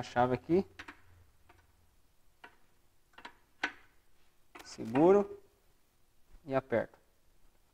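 A metal wrench clinks against a wheel hub.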